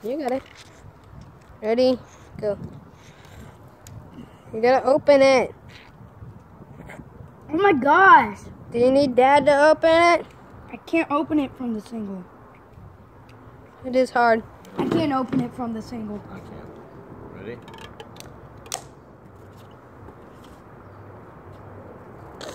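A boy gulps a drink from a can.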